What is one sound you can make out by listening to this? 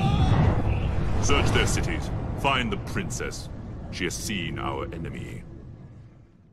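A man speaks in a deep, menacing voice.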